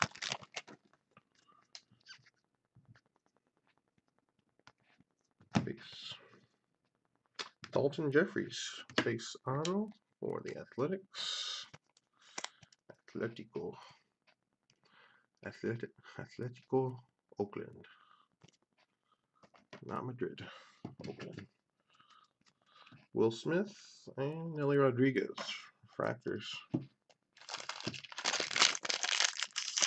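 Plastic wrapping crinkles and tears as a pack is opened.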